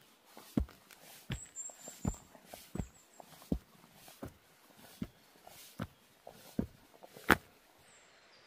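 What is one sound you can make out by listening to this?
Footsteps crunch on a dirt trail close by.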